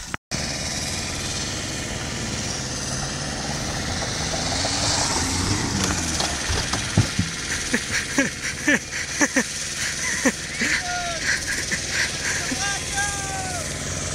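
A van engine runs and revs nearby.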